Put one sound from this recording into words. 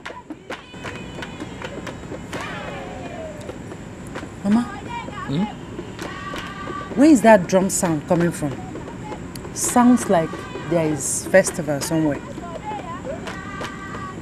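A young woman speaks close by, with strong emotion.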